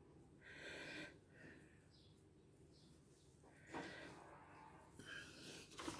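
Thread rustles softly as it is pulled through stiff canvas.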